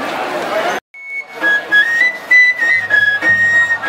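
A pipe plays a lively tune.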